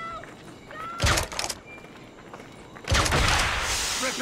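A pistol fires a loud shot.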